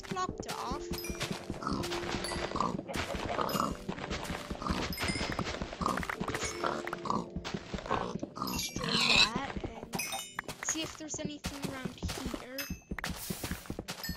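A pig grunts.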